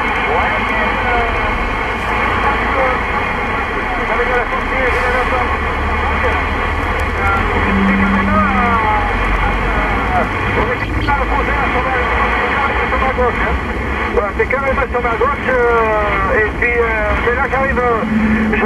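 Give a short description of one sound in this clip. A car drives along a motorway, its road noise rumbling from inside.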